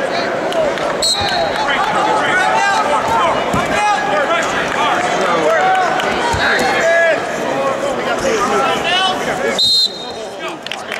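Shoes squeak sharply on a wrestling mat.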